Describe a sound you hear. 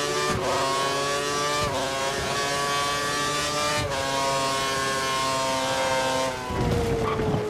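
A racing car engine screams at high revs, its pitch climbing and dropping with each gear change.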